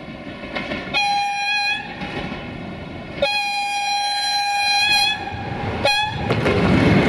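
A train horn sounds several long blasts.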